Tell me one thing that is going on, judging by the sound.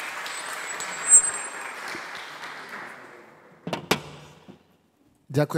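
An audience applauds, then the applause fades.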